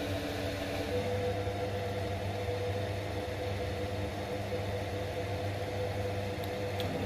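A drill bit grinds into a spinning metal rod.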